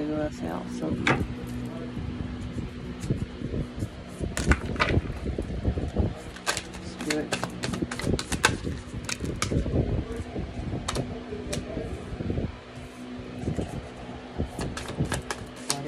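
Cards shuffle and slap onto a wooden table.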